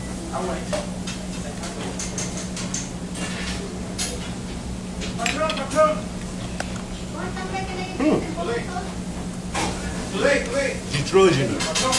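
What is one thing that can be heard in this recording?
Cutlery clinks against a plate.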